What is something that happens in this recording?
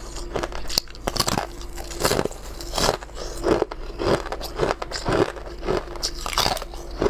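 A young woman bites and crunches ice close to a microphone.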